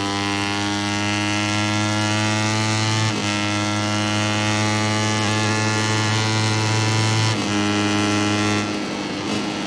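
A motorcycle engine screams at high revs, shifting gears as it speeds up.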